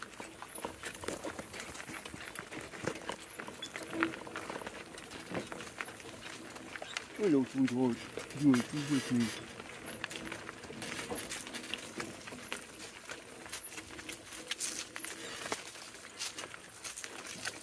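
Hooves clop and crunch on a gravel road.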